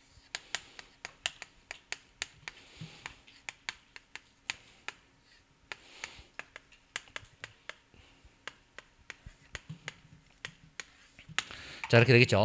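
Chalk taps and scrapes quickly on a board.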